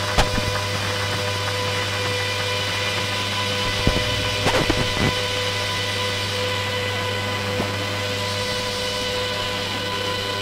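Electronic music plays with steady droning tones.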